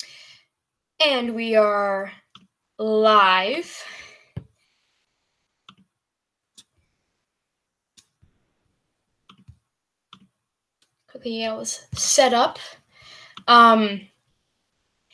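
A young woman speaks casually and close to a microphone, in short bursts with pauses.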